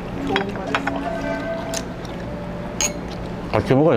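Glasses clink together.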